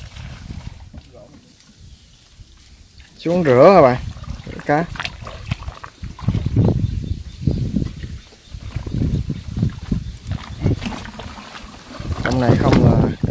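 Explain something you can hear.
Water splashes and sloshes around a man wading.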